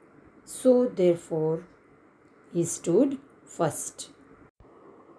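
A woman speaks calmly, heard through an online call.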